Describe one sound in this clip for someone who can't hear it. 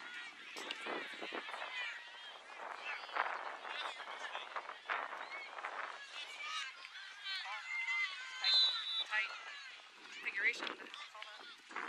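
Girls shout and call out to each other across an open field outdoors.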